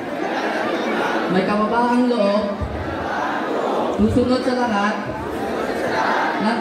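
A crowd of young people chatters and cheers outdoors.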